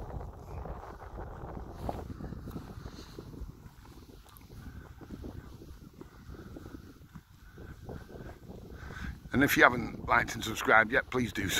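Wind buffets outdoors with a low rumble.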